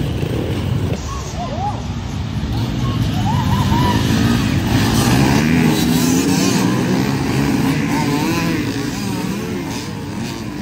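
Dirt bike engines rev and whine as a pack of bikes comes closer.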